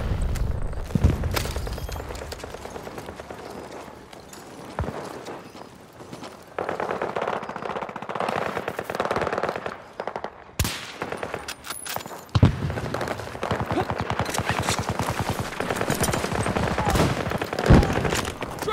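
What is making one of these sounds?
A rifle fires with loud, sharp cracks.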